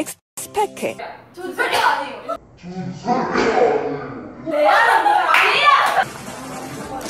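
Young women talk and laugh loudly nearby.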